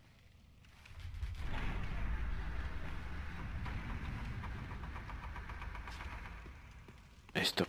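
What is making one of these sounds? Heavy doors grind and rumble slowly open.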